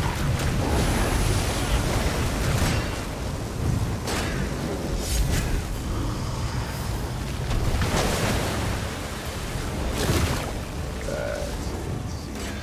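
Magic spells crackle and blast in a game battle.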